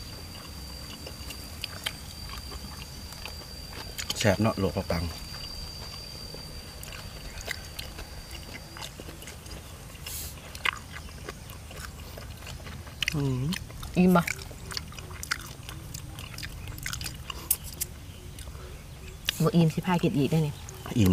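A young woman chews and slurps food close by.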